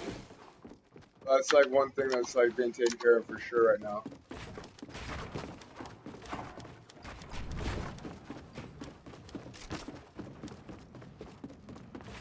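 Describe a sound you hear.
Footsteps clatter quickly across wooden planks.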